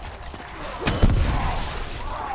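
An explosion booms with a sudden roar.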